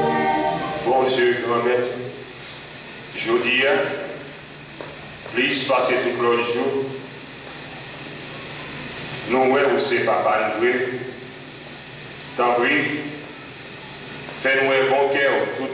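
A man chants short phrases through a microphone, with pauses between them.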